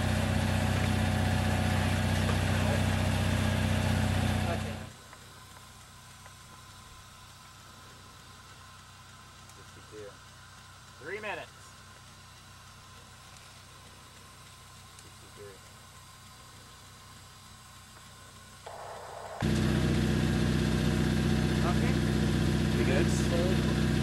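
Wind blusters loudly outdoors.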